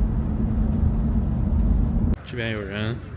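A car engine hums and road noise rumbles low and steady from inside a moving car.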